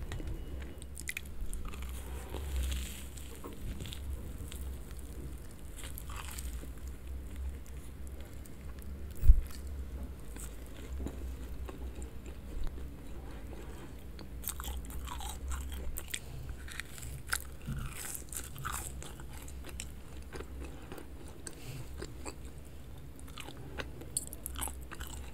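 A woman bites into and chews crunchy cookies close to a microphone.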